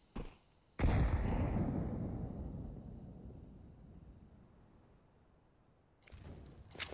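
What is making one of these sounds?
A rifle fires a single loud shot that rings out and slowly fades.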